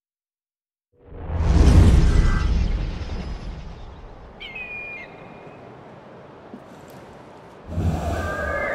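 Wind rushes loudly, then eases.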